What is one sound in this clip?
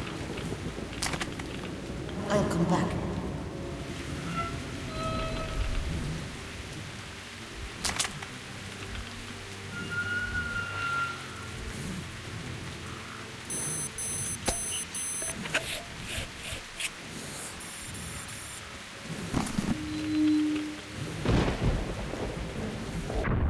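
Footsteps crunch on loose rubble.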